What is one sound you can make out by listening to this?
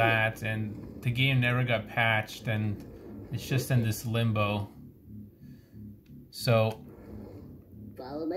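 Plastic controller buttons click softly.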